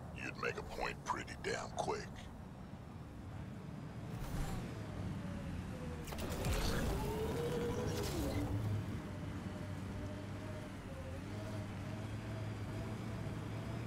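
A vehicle engine hums and whines as it drives.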